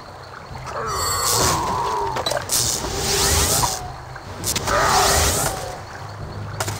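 A magic spell whooshes and crackles in bursts.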